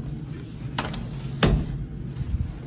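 A metal stall door latch clicks.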